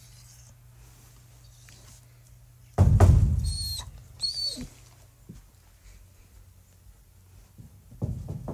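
A dog's paws pad softly across carpet.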